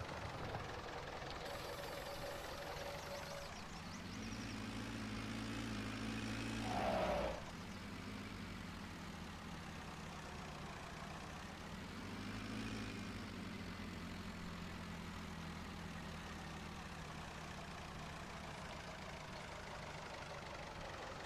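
A plough scrapes through soil.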